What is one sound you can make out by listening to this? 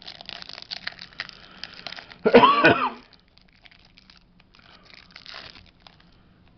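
A plastic wrapper crinkles and rustles close by.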